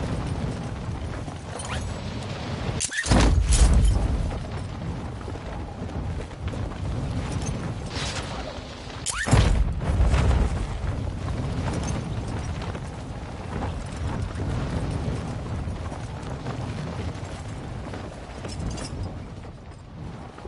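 Wind rushes steadily past, with two loud sudden gusts.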